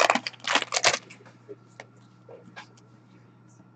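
Small cardboard boxes tap and scrape as they are handled.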